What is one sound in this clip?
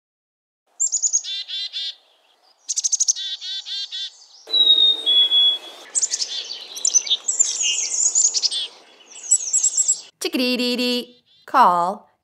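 A small bird sings a series of quick, buzzy chirps and trills.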